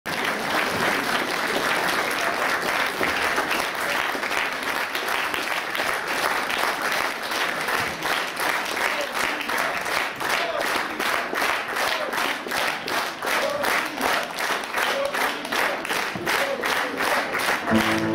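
A large audience applauds loudly in a hall, the clapping turning into a steady rhythmic beat.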